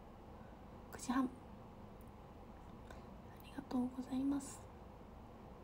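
A young woman speaks briefly and softly close by.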